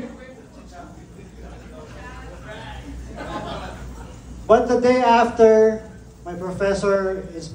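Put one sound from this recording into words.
An elderly woman speaks calmly into a microphone over a loudspeaker in a room with some echo.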